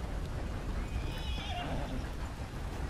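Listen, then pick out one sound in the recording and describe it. A horse whinnies shrilly.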